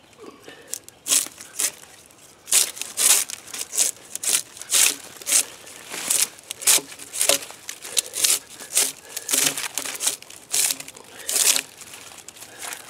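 A hand saw rasps through a log in quick, repeated strokes.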